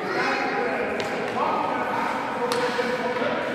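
A hockey stick knocks sharply on ice.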